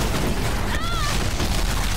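An explosion bursts with crackling sparks.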